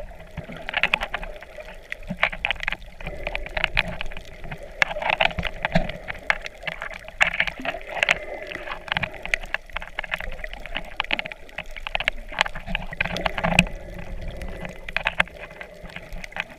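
Water swirls and bubbles up close, heard muffled underwater.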